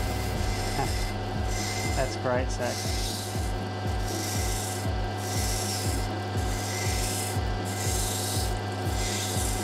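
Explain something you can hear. A grinding wheel hums steadily as a small stone is pressed against it.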